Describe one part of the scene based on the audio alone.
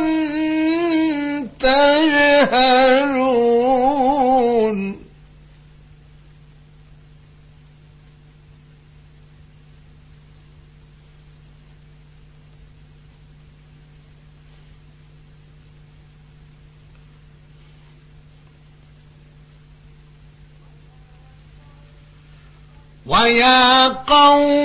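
A man chants in a long, melodic voice through a microphone, with pauses between phrases.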